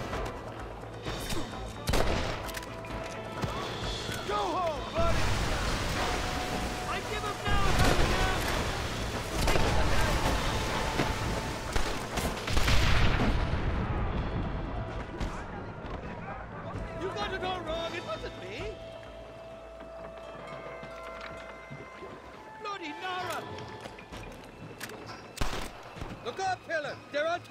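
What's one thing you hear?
Rifle shots crack repeatedly.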